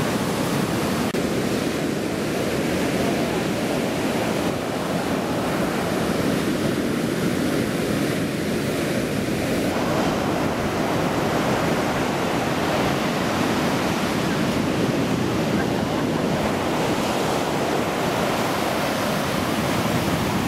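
Waves crash and roar steadily onto a beach close by.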